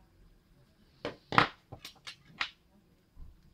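Metal pliers clatter onto a wooden table.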